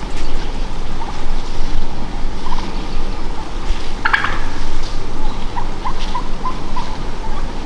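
Wild turkeys cluck softly nearby.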